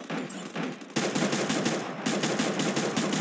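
Rapid gunshots fire in a burst.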